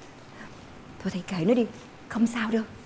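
An older woman speaks with emotion, close by.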